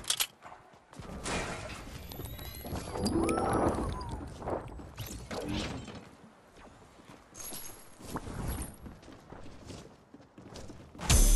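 Footsteps thud on wooden floorboards and stairs.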